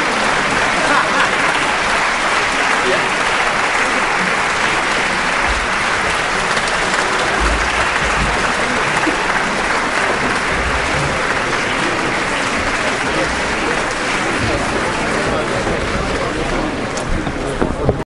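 A large audience applauds steadily in a big echoing hall.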